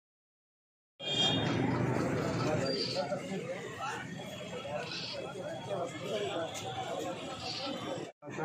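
Several men talk over one another nearby in a small crowd.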